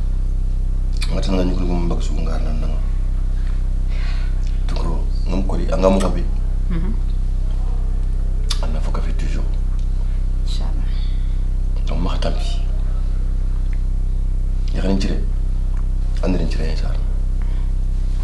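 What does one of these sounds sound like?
A man speaks quietly and slowly, close by.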